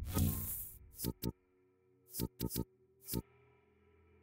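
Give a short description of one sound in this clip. Sharp menu clicks sound in quick succession.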